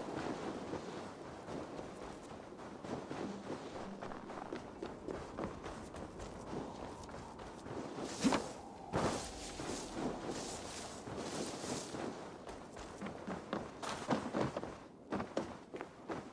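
Footsteps crunch quickly through snow.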